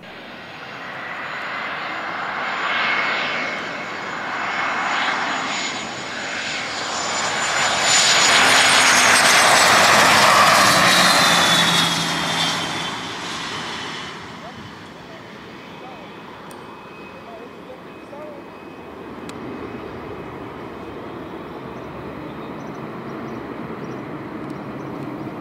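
A jet's engines whine and roar loudly as the jet approaches, passes close by and fades away into the distance.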